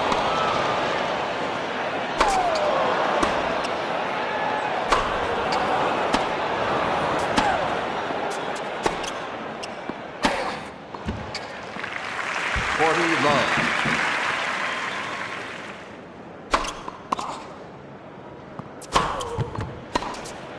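A tennis ball is struck sharply by rackets back and forth.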